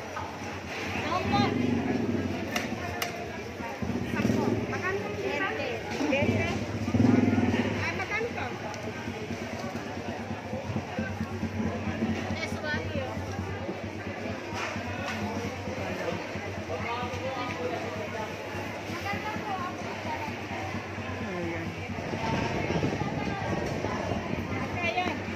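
Men and women chatter in a busy crowd nearby.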